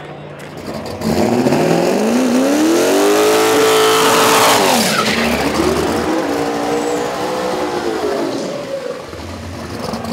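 A drag racing car's engine revs hard during a burnout.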